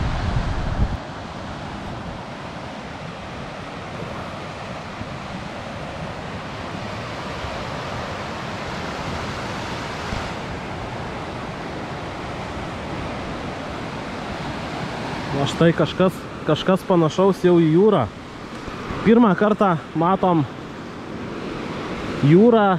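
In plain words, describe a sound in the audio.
Waves wash steadily onto a shore.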